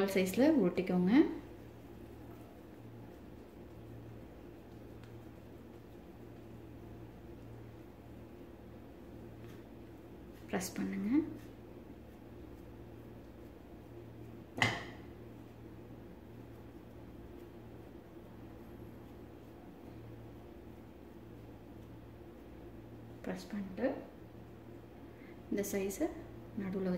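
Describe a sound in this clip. Hands pat and squeeze soft dough.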